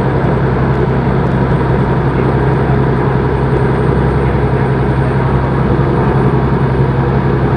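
A truck engine drones steadily from inside the cab.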